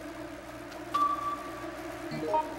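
A short electronic chime rings out.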